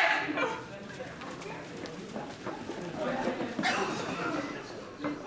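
Footsteps pad and squeak quickly across a floor indoors.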